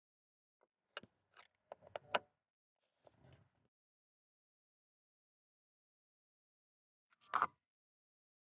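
Plastic trim clips snap and click as a car door panel is pried loose.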